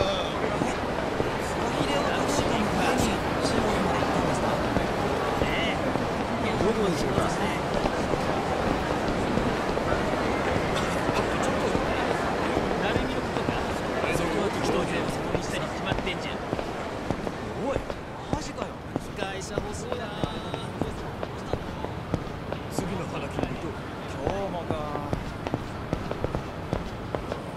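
Footsteps tap on pavement at a steady walking pace.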